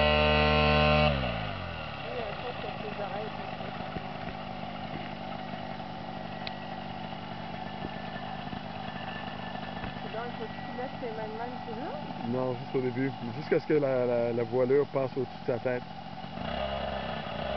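A small propeller engine idles steadily close by.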